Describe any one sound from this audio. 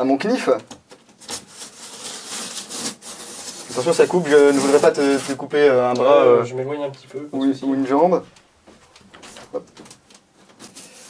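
A knife slices through cardboard tape.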